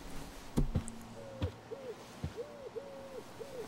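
An acoustic guitar is softly plucked.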